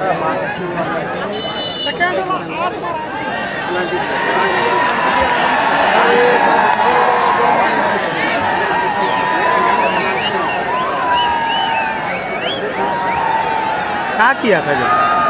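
A large crowd outdoors chatters, shouts and whistles loudly.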